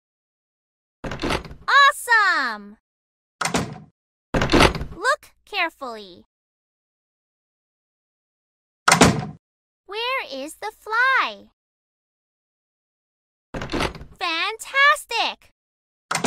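A small door swings open with a soft thud.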